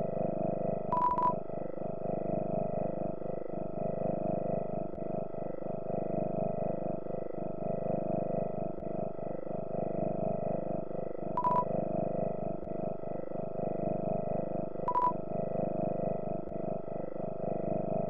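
Gentle looping game music plays steadily.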